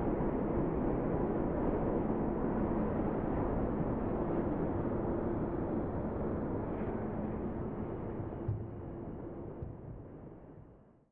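Traffic roars past steadily on a busy road, then fades away.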